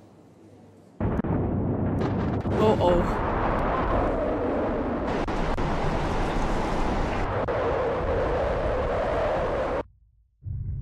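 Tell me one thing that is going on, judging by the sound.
A storm wind roars loudly and steadily.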